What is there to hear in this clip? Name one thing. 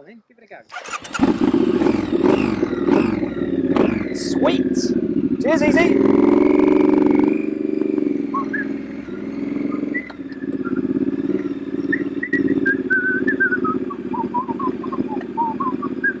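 A motorcycle engine starts and idles with a steady rumble.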